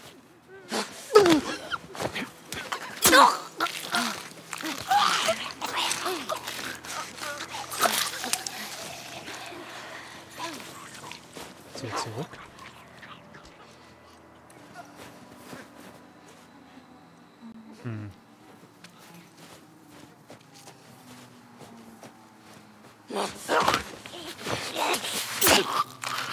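A knife stabs into flesh with wet thuds.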